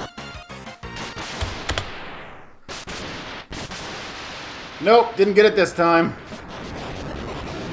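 Retro video game music plays.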